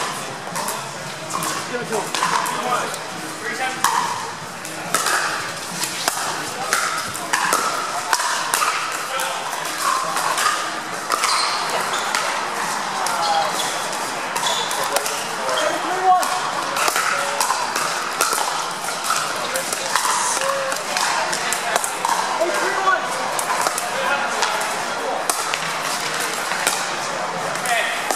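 Paddles pop against a plastic ball in sharp, quick hits.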